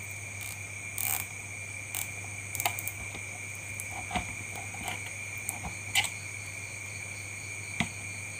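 Small plastic parts click and tap close by.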